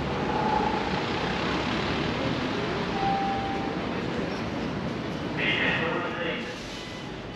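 City street noise hums steadily outdoors.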